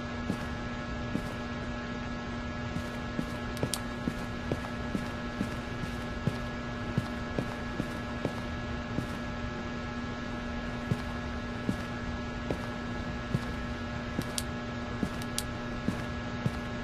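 Footsteps thud at a walking pace.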